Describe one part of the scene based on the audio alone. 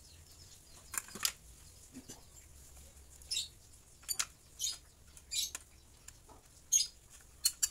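Plastic parts click and tap against a circuit board.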